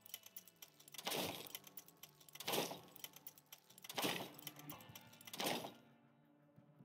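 Game menu sounds click as selections change.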